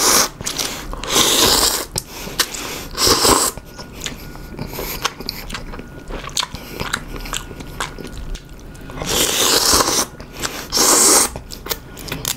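A man slurps noodles loudly, close up.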